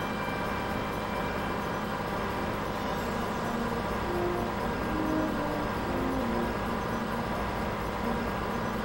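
A loader's engine rumbles steadily as it drives.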